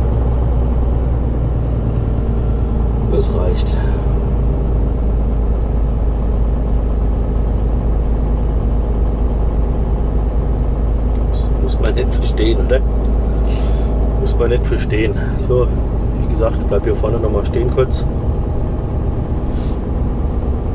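A heavy truck engine drones steadily from inside the cab.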